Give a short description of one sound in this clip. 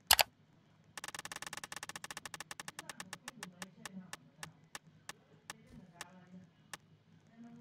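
A spinning prize reel ticks rapidly, then gradually slows down.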